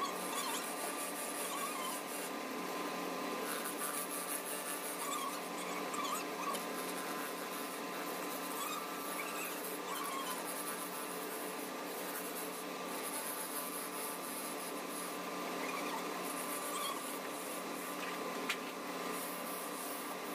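A chisel scrapes and hisses against spinning wood.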